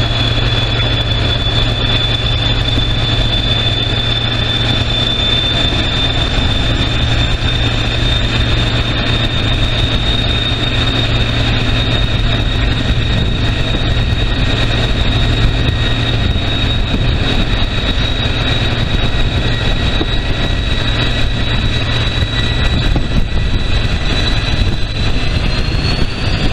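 A train rumbles steadily along the track, heard from an open window.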